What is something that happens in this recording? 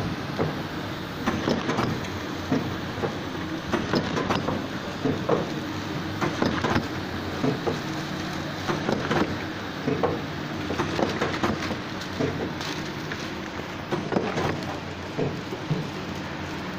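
A packaging machine runs with a steady hum.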